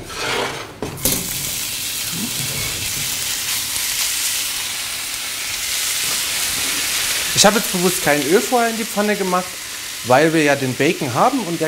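Vegetables sizzle loudly in a hot frying pan.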